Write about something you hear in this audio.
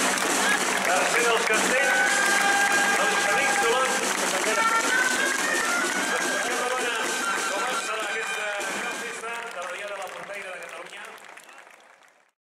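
A large crowd cheers and shouts loudly outdoors, slowly fading.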